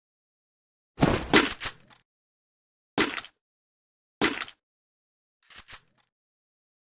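Menu buttons click and chime.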